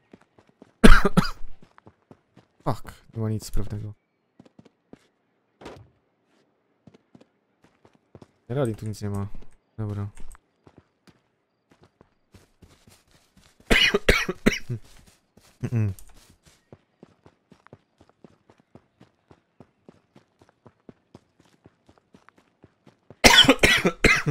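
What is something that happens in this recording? Footsteps pad quickly over grass and dirt.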